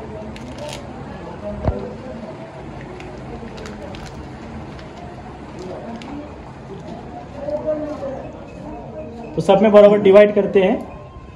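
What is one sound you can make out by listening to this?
Men talk nearby, and one voice turns loud near the end.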